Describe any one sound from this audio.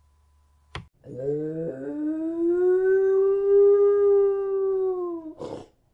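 A dog howls in a long, rising and falling tone.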